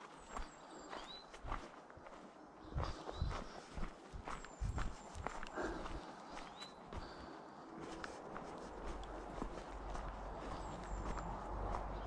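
Footsteps crunch on dry needles and leaves along a forest path.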